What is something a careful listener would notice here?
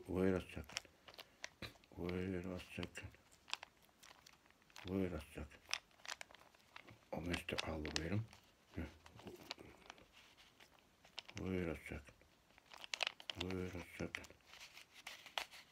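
A puzzle cube's plastic layers click as they are twisted.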